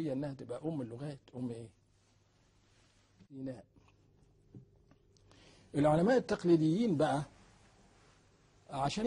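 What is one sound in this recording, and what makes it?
An elderly man speaks calmly and deliberately into a close microphone, pausing between phrases.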